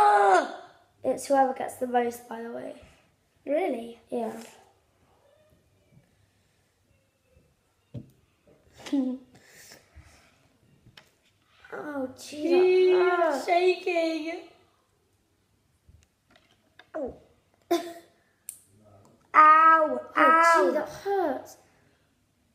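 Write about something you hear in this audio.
Children talk with animation close by.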